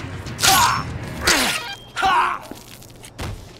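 Heavy blows land with wet, splattering thuds.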